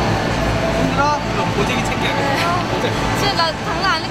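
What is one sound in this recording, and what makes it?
A man asks a question close by.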